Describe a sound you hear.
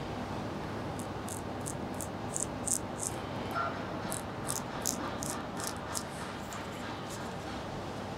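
A straight razor scrapes over stubble in short, crisp strokes.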